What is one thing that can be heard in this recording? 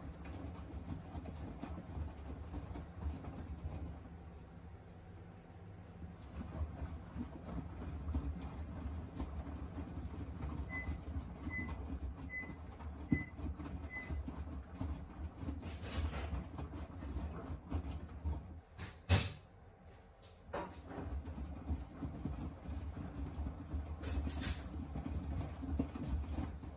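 Wet laundry sloshes and thumps inside a washing machine drum.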